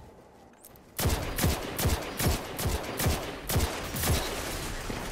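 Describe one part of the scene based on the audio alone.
A gun fires a quick series of loud shots.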